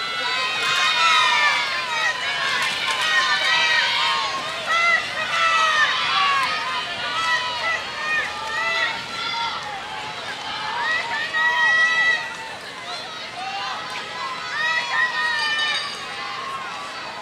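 A crowd of spectators cheers and shouts from a riverbank outdoors.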